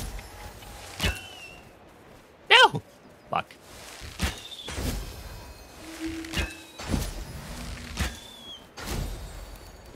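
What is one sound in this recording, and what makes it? A bowstring snaps as arrows are loosed, again and again.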